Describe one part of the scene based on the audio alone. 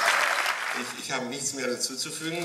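A man speaks through a microphone after the applause.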